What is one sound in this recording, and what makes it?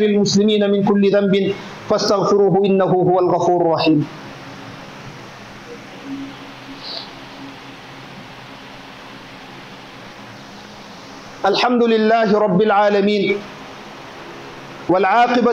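A man chants into a microphone in a resonant, echoing voice.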